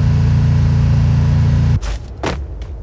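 A car engine hums low and steady, then cuts off.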